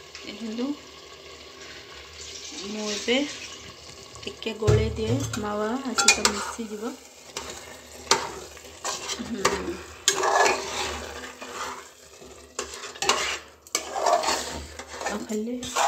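Food sizzles in a pot.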